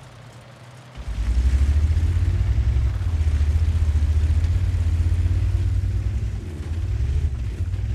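A heavy tank engine roars and rumbles as the tank drives off.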